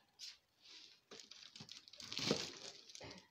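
Plastic items clatter as a hand rummages through them.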